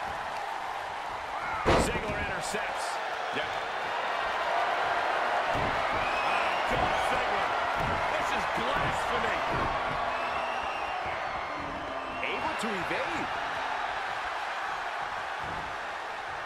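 A large arena crowd cheers and roars.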